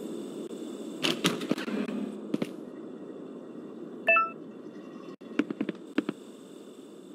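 Footsteps thud on stone stairs.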